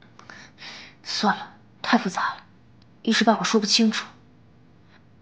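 A young man speaks softly and calmly up close.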